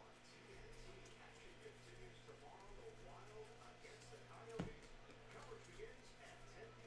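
Trading cards rustle and slide against each other in a man's hands.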